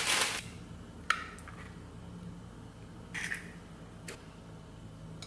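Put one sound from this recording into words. Raw eggs drop with a wet plop into a glass bowl.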